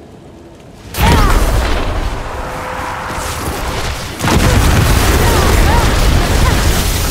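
Loud battle noises burst out as a fighter clashes with a hulking monster.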